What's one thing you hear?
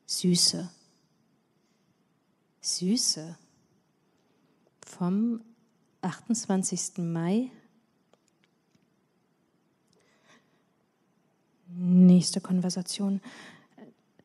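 A woman reads aloud slowly into a microphone, with pauses.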